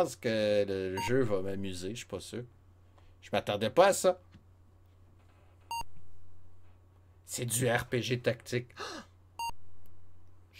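A retro computer game gives off short electronic beeps.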